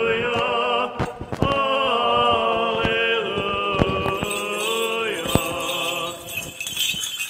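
A man chants in a sustained, melodic voice that echoes through a large hall.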